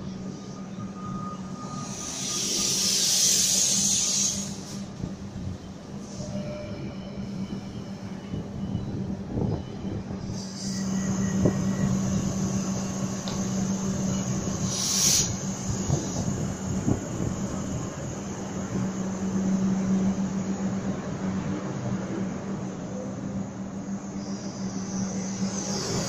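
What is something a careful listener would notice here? An electric train hums steadily beside the platform.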